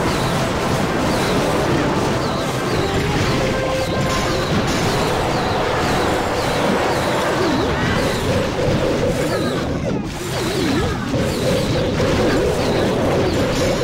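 Explosions and battle noises from a video game crash and boom continuously.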